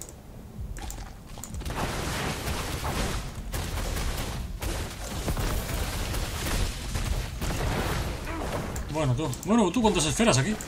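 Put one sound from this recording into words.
Magic blasts whoosh and crackle in a game battle.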